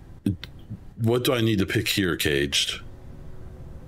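A man speaks briefly and with animation into a microphone.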